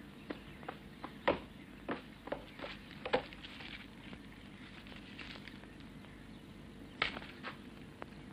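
Small objects knock and clatter on a wooden desk.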